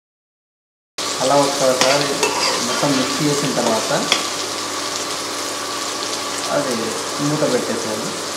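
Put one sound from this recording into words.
A metal spoon scrapes and stirs food in a pan.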